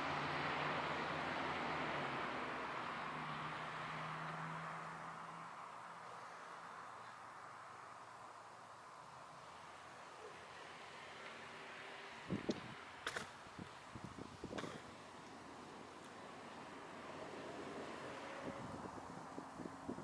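Cars pass by on a road.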